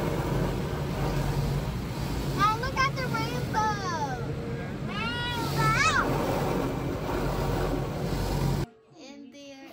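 Rotating brushes scrub and spray water over a car's windshield with a steady rushing roar.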